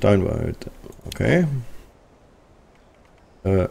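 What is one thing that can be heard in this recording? A game menu clicks open.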